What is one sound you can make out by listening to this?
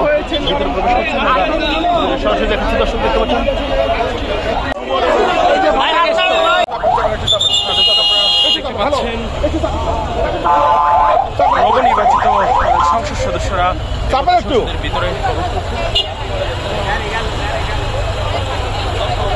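A crowd of men talk and shout excitedly nearby.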